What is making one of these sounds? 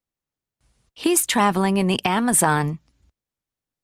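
A woman speaks briefly through an online call.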